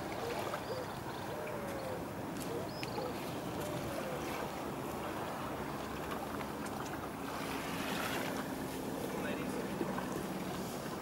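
Wind blows steadily across open water.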